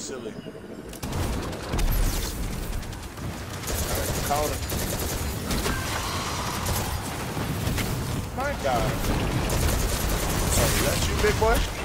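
Gunfire from a game rattles rapidly.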